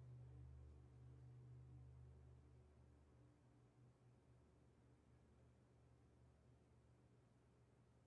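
Marimba notes ring softly and slowly fade.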